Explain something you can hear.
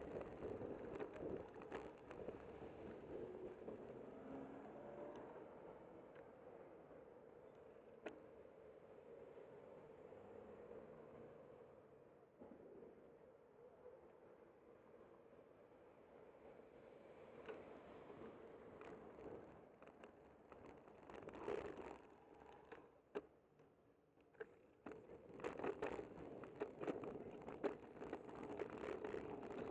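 Wind rushes and buffets across the microphone.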